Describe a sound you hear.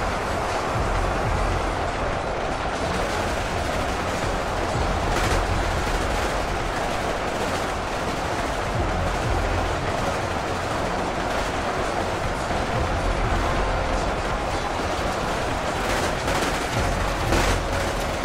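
A large battle rages with a dense roar of clashing weapons.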